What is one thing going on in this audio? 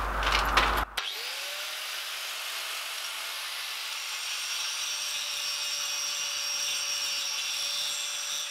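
An angle grinder whirs up to speed and runs steadily.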